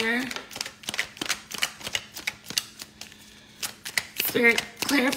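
Cards in plastic sleeves rustle and slap as they are shuffled quickly.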